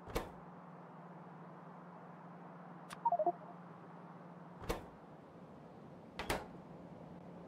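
Short soft interface clicks sound now and then.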